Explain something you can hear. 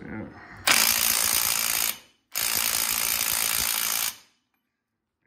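A cordless impact wrench whirs loudly in two bursts.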